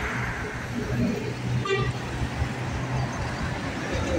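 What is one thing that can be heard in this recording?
A truck drives past.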